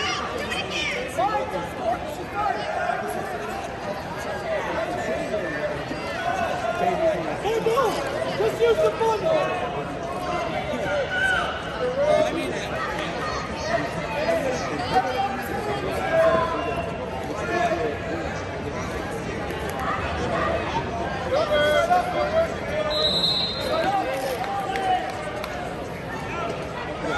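A crowd of spectators chatters and calls out throughout a large echoing arena.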